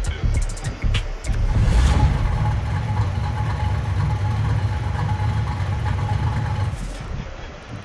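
A car engine rumbles deeply and steadily, then falls away.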